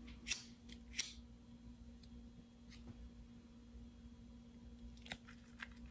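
A lighter clicks and flares.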